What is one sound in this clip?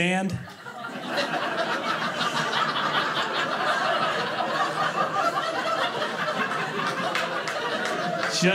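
An audience laughs and applauds in a large room.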